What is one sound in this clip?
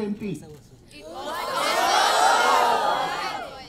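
A crowd of young people cheers and shouts loudly in a large hall.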